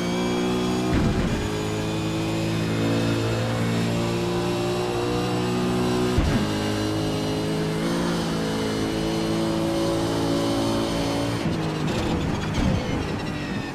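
A racing car gearbox clunks through quick gear changes.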